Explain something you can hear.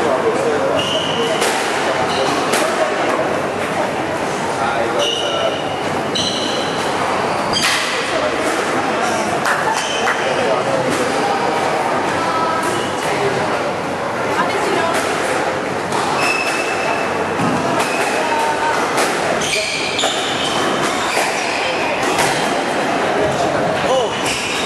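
A squash ball smacks off rackets and walls with sharp echoing thwacks.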